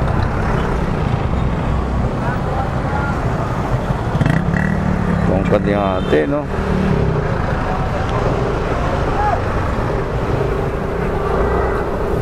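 Traffic rumbles and idles on a busy street outdoors.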